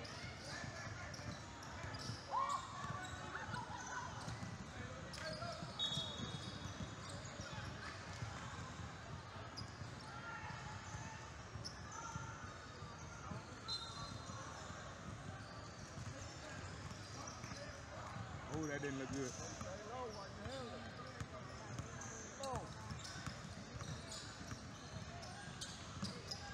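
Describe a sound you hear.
A crowd of spectators murmurs and calls out in a large echoing gym.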